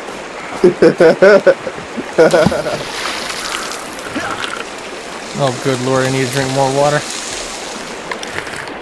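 Waves wash and foam over rocks.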